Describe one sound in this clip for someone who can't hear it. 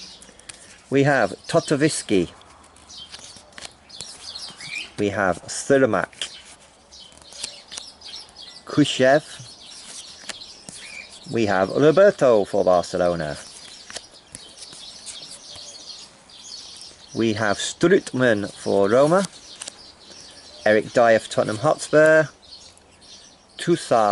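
Stiff cards slide and flick against each other.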